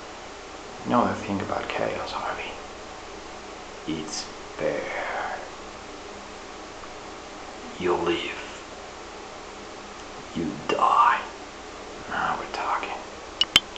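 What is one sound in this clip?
A young man speaks calmly and close up, in short bursts with pauses.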